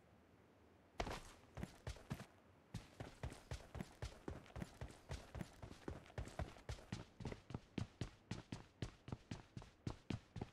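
Footsteps run quickly and steadily on a hard floor.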